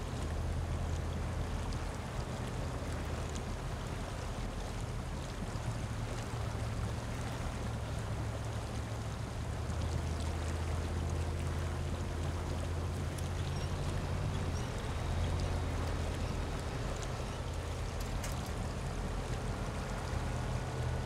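Tyres splash and squelch through mud and water.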